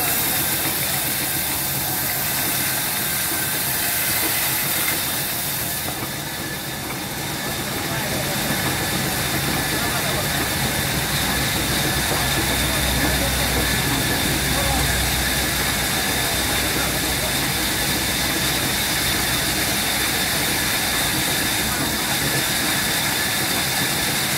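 A motor hums steadily.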